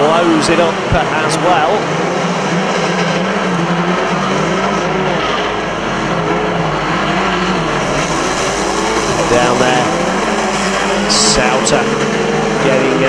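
Racing car engines roar and rev loudly around a track.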